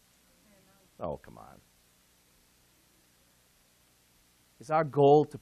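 A man speaks into a microphone in short phrases, with pauses.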